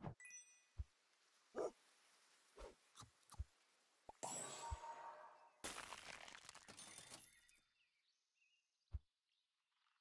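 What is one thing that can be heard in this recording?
Short game clicks and pops sound now and then.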